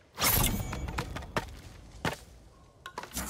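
Cut bamboo pieces clatter to the ground.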